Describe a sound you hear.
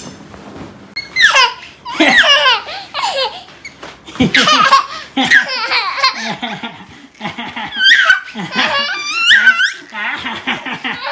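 A small boy laughs and squeals loudly.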